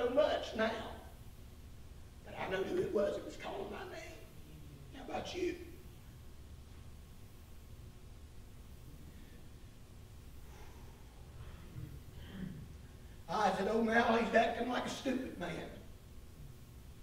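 An elderly man speaks calmly through a microphone in a small echoing room, with long pauses.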